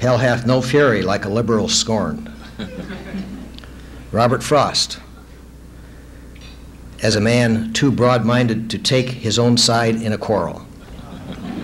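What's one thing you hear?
An older man speaks steadily into a microphone, with pauses, heard through a loudspeaker.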